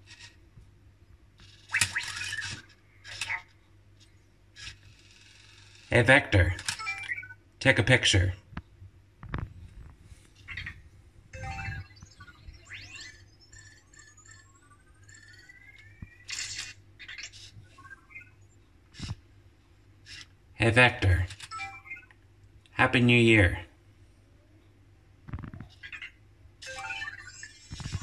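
A small robot's motors whir softly as it moves.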